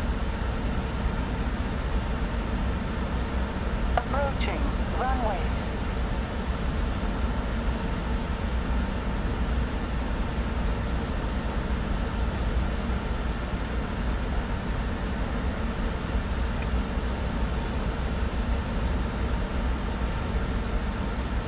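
Jet engines drone steadily with a low rumble.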